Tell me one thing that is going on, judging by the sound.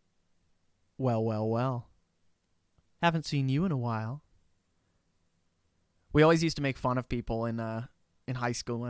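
A young man speaks close into a microphone in short, calm bursts with pauses.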